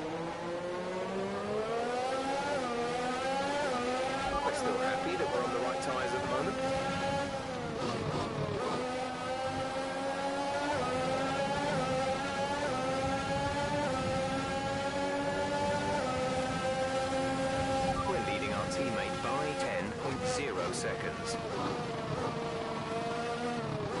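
A racing car engine whines at high revs, rising and dropping as it shifts gears.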